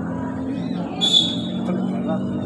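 A referee's whistle blows sharply once.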